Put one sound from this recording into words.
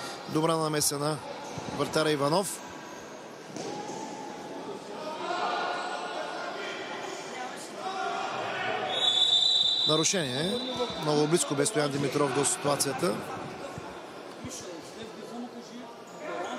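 A ball is kicked with sharp thuds in an echoing indoor hall.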